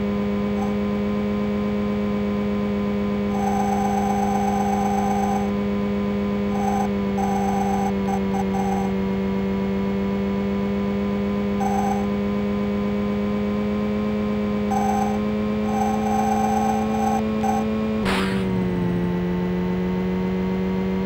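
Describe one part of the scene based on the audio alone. A video game car engine hums steadily at high speed.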